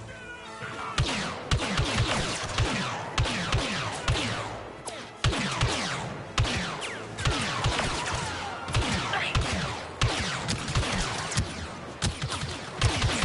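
Gunshots and explosions boom again and again in a battle.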